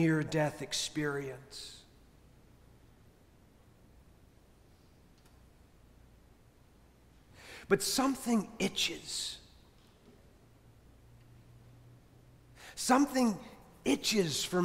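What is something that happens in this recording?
A middle-aged man speaks slowly and calmly into a microphone, with long pauses, in a reverberant hall.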